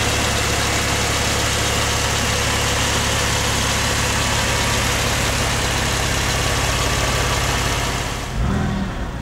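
A car engine idles with a steady, even rumble close by.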